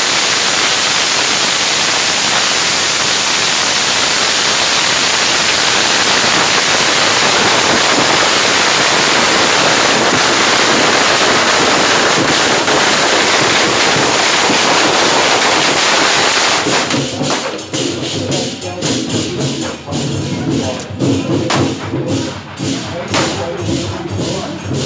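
Firecrackers crackle in rapid bursts.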